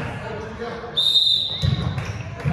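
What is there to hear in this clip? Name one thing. A referee's whistle blows once, sharply.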